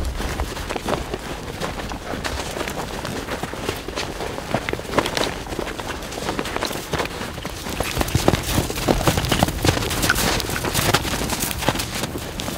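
Hooves crunch through deep snow at a steady walk.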